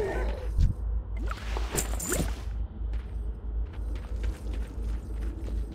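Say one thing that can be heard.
A sword strikes a creature with sharp blows.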